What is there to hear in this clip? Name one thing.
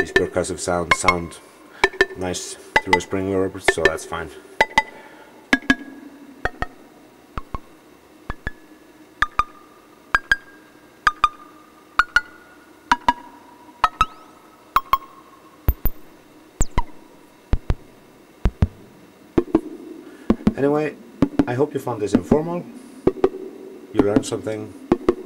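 A modular synthesizer plays buzzy, bubbling pitched tones that sweep and warble.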